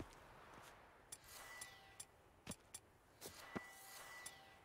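Footsteps crunch on grass and stone.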